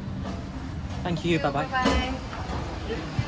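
A middle-aged woman speaks briefly close by.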